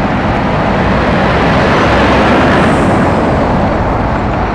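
A heavy lorry rumbles past close by.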